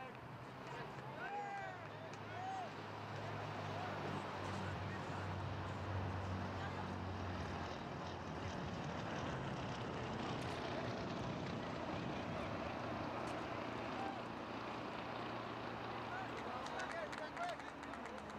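A crowd of spectators chatters and calls out at a distance outdoors.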